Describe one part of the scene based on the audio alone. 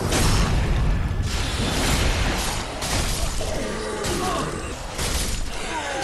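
Heavy blades clash and clang in a fight.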